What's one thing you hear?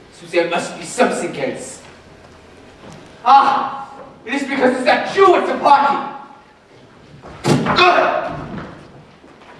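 Two men speak loudly in a large echoing hall.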